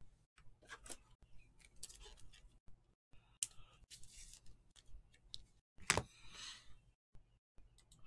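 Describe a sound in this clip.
A plastic card sleeve crinkles and taps in hands.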